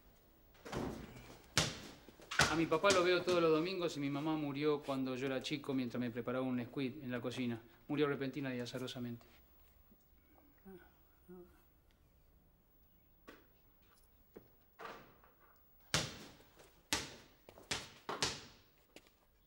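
A basketball bounces on a hard floor with sharp thuds.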